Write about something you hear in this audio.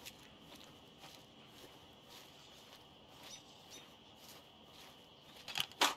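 Footsteps rustle through dry grass and brush at a steady walking pace.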